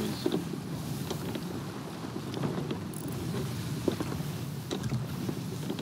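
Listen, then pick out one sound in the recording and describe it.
Rough sea waves splash and roll steadily.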